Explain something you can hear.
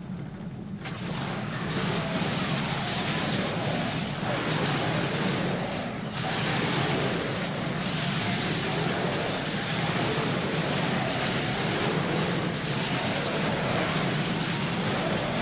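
Fighting sounds from a video game crackle and clash loudly.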